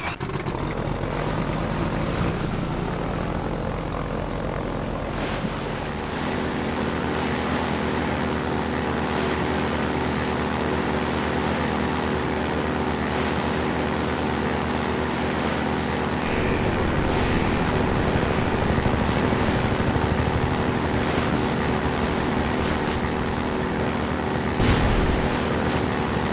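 Water splashes and rushes under a speeding boat.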